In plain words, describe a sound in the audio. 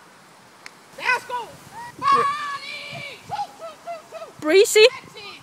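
A woman calls out to a dog with excitement, outdoors.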